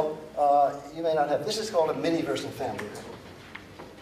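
An elderly man speaks calmly.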